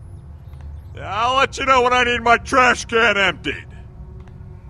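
A young man speaks sarcastically, close by.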